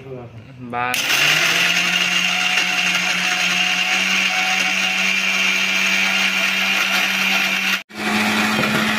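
An electric blender motor whirs loudly and steadily.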